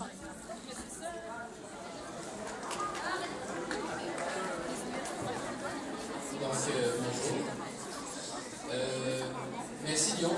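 Many children and teenagers chatter and murmur together in a large echoing hall.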